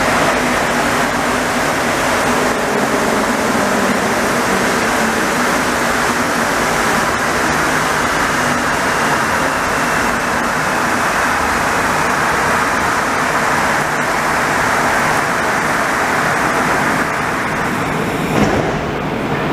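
An MR-73 rubber-tyred metro train rolls along a platform.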